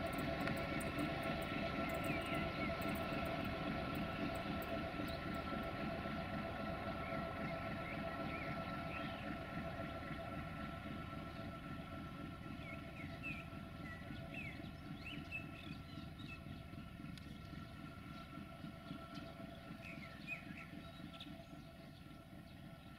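A diesel locomotive's engine drones as it approaches.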